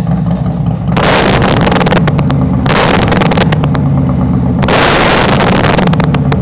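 A motorcycle engine roars in loud bursts.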